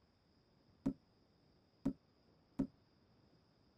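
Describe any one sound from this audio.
Short clicks tick three times.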